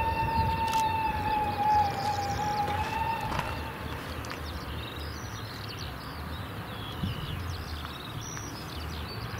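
A steam locomotive chuffs in heavy rhythmic puffs in the distance.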